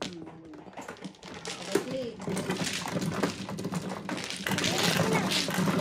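Many tiles rattle as they are shuffled across the table.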